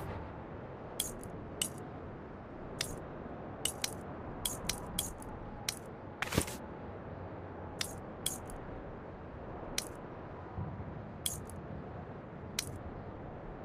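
Short soft clicks tick one after another as menu selections change.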